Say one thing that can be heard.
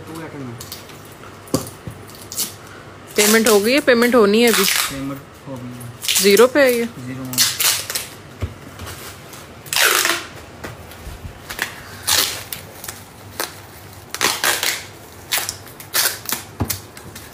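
Small boxes tap and clatter softly on a table.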